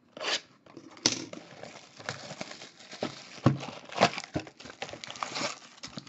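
Plastic wrap crinkles and tears as hands unwrap a box.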